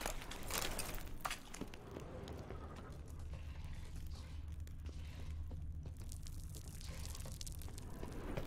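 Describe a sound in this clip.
A burning torch crackles.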